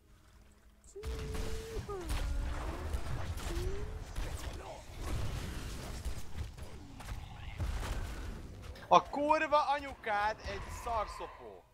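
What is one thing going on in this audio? Blows and magic blasts clash and crackle in a fast fight.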